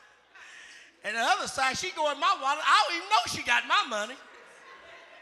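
A man preaches with animation through a microphone in a large hall.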